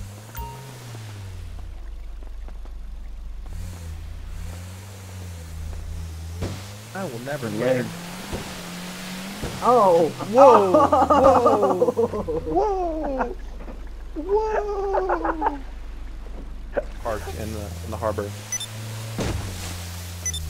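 Water splashes against a speeding boat's hull.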